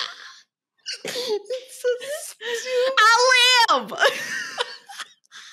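A young woman laughs loudly into a microphone over an online call.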